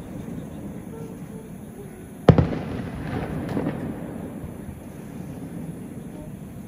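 Firework sparks crackle and fizzle overhead.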